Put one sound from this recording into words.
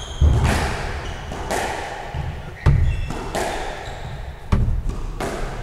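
A squash ball smacks hard against the walls, echoing in a hard-walled court.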